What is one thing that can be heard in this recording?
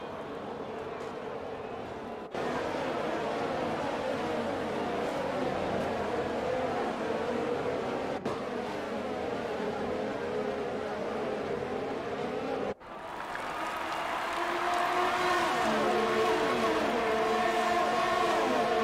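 Racing car engines whine loudly and shift pitch as they speed past.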